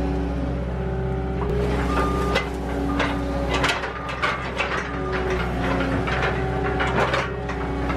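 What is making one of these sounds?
Metal parts of a loader clank and rattle.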